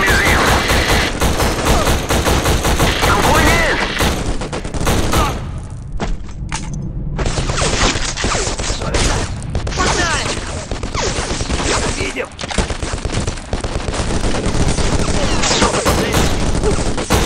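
An assault rifle fires rapid bursts.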